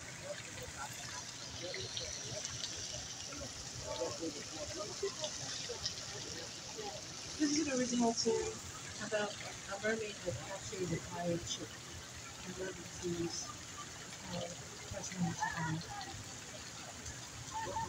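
A woman speaks with animation into a microphone over loudspeakers.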